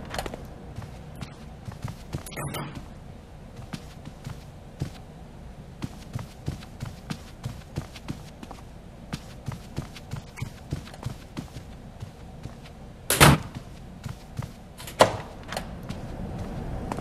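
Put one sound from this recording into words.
Footsteps thud softly on a carpeted floor.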